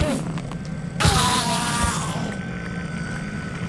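A game creature dies with a burst of noise.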